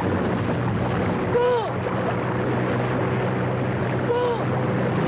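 A motorboat engine drones steadily.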